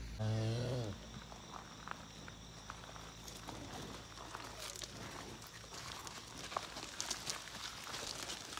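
Hooves crunch slowly on gravel close by.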